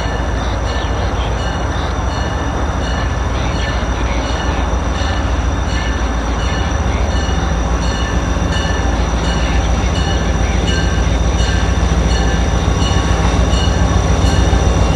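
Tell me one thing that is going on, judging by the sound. A diesel locomotive engine rumbles loudly as it approaches and passes close by.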